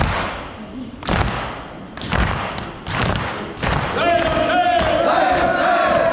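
Men beat their chests in rhythm, with heavy thumps echoing in a large hall.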